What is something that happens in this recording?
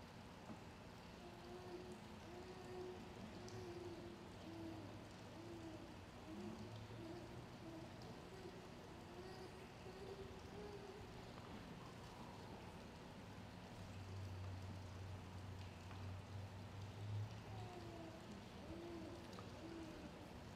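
A man sings softly through a microphone.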